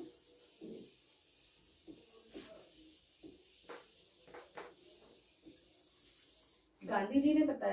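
A sponge wipes across a whiteboard.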